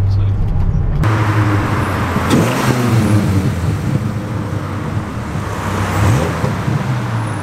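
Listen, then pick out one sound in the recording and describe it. A sports car engine roars loudly as the car drives past outdoors.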